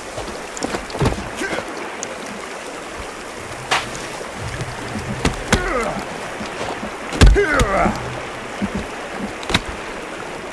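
Heavy wooden logs thud and knock as they are set in place.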